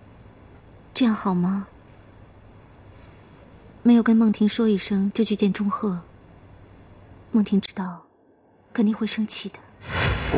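A young woman speaks anxiously, her voice rising.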